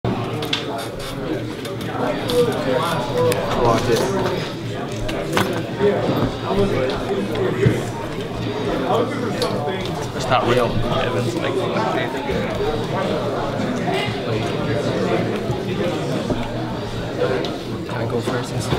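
Playing cards slap and slide softly on a cloth-covered table.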